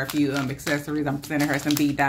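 A plastic pouch crinkles in a hand.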